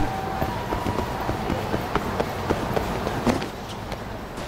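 Quick footsteps run on pavement.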